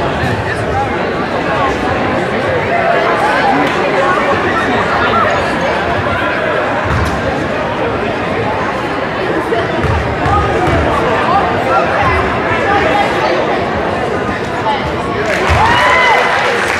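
Many people chatter and call out in a large echoing gym.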